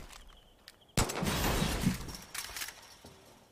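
A chain-link fence rattles as someone climbs it.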